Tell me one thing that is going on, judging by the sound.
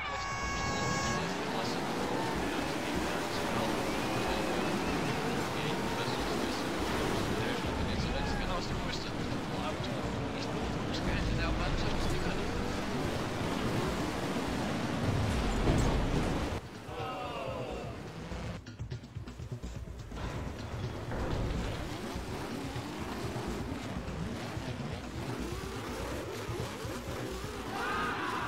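Racing engines roar and whine at high speed.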